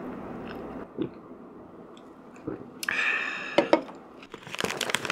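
Chopsticks click against a ceramic bowl.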